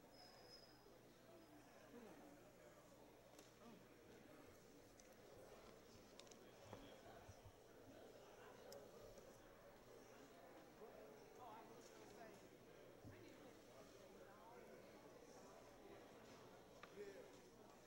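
A crowd of men and women murmur and chatter in a large echoing hall.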